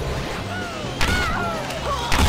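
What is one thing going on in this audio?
Objects crash and smash loudly.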